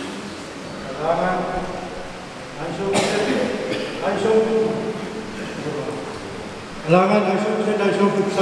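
A middle-aged man speaks calmly through a microphone in an echoing hall.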